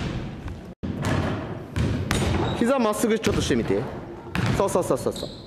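A basketball thuds on a wooden floor.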